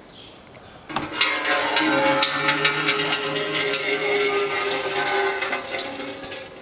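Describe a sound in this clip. Oil trickles in a thin stream and splashes into a container below.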